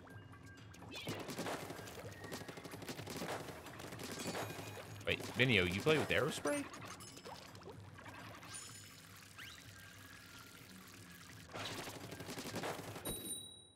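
Ink splatters wetly in bursts.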